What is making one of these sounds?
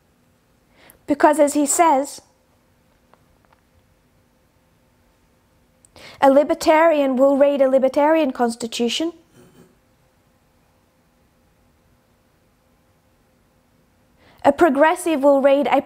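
A young woman speaks calmly and close to a microphone, with long pauses.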